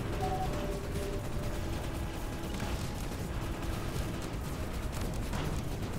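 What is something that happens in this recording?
Laser weapons zap and fire rapidly.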